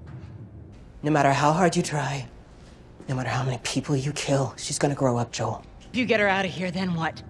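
A woman speaks tensely and firmly, close by.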